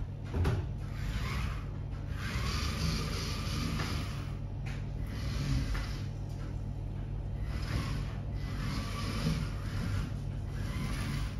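A small toy car's electric motors whir in short bursts as it drives across the floor.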